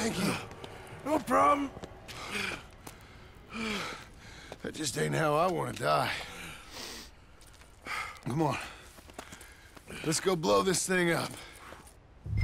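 A younger man answers casually.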